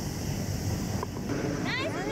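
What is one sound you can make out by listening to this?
A golf ball drops into the cup with a rattle.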